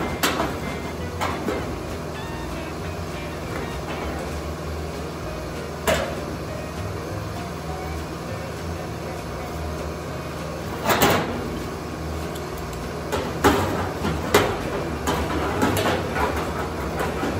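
Metal clamps clank and click against sheet metal.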